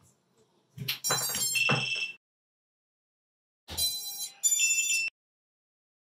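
A drone's motors beep a short series of high tones.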